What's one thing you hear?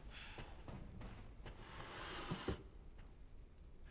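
A wooden drawer slides open with a knock.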